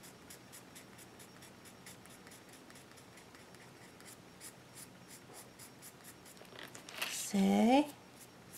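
A coloured pencil scratches softly on paper in quick strokes.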